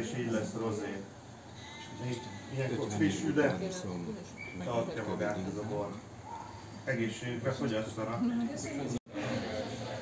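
Several adult men and women chat casually close by.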